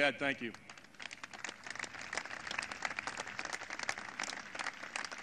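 An outdoor crowd applauds.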